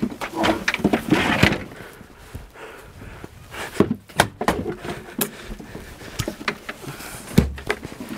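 A wooden shelf clatters as it is dragged out and tipped over.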